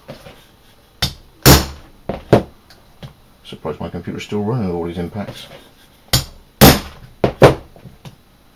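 A wooden mallet strikes a metal punch through leather.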